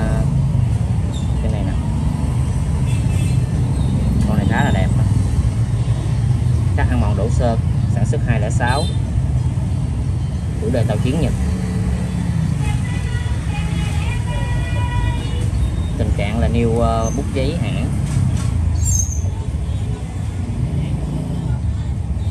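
A soft cloth rubs against a metal lighter.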